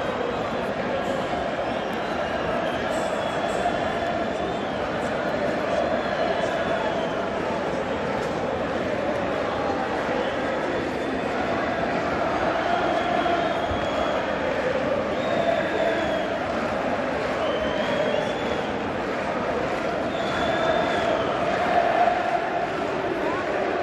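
A large stadium crowd sings and chants loudly, echoing around the open stands.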